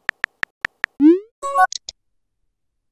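A short whooshing chime sounds as a message is sent.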